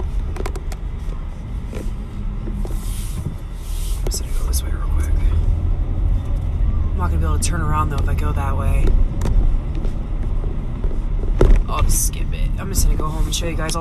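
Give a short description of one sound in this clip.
A car engine hums low and steady from inside the car as it drives slowly.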